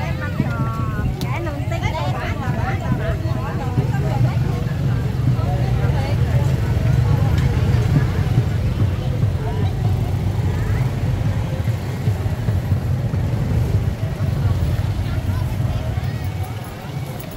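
Motorbike engines idle and rumble nearby.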